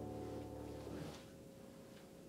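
A piano chord rings out and is suddenly cut off.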